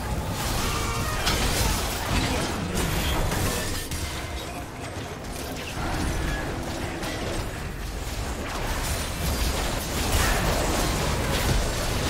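Magic spells whoosh and crackle in a busy fight.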